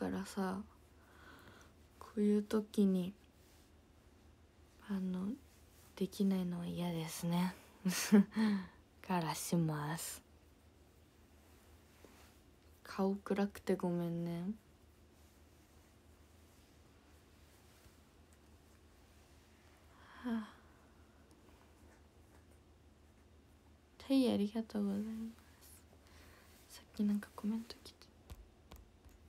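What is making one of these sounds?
A young girl talks softly and cheerfully, close by.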